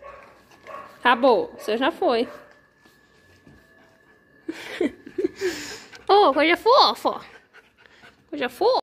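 A puppy whines and yelps close by.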